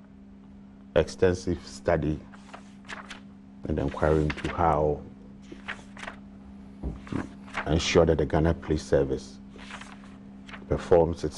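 A middle-aged man speaks calmly and earnestly into a close microphone.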